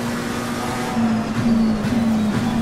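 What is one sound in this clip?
A racing car engine drops in pitch as gears shift down.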